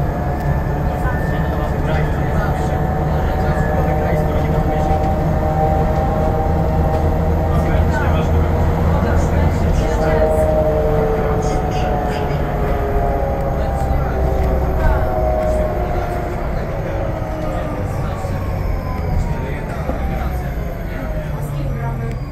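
A bus engine hums and whines steadily as the bus drives along.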